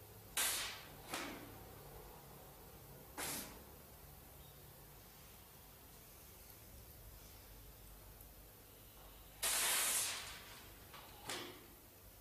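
An elderly man blows out sharp, hissing puffs of breath.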